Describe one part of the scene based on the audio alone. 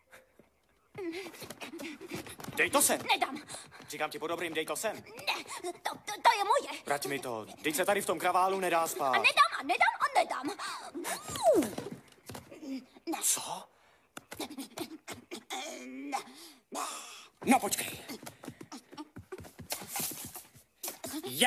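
A boy talks excitedly close by.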